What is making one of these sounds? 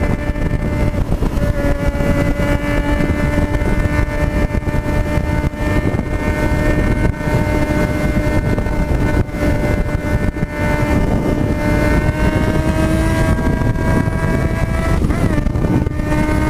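A motorcycle engine hums steadily at cruising speed, close by.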